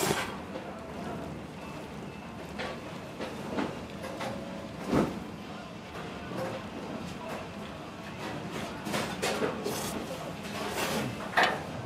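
A metal fork scrapes and clinks against a metal bowl.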